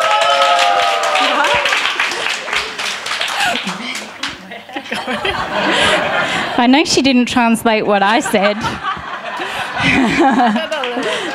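A young woman laughs heartily into a microphone.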